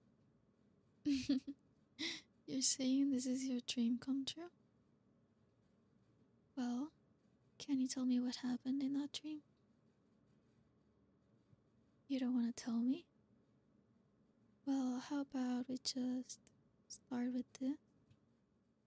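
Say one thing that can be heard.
A young woman speaks softly and close to the microphone, in short phrases with pauses.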